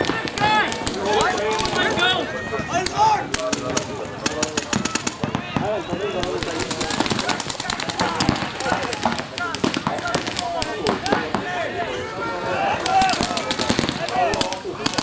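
Young men shout loudly from a distance outdoors.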